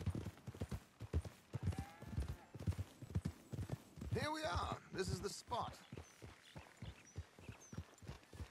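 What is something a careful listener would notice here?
Horses' hooves thud steadily on soft ground at a trot.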